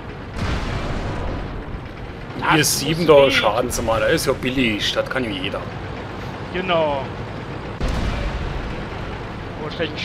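Tank engines rumble and clank steadily.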